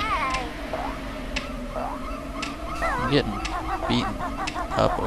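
Bouncy video game music plays with a twangy melody.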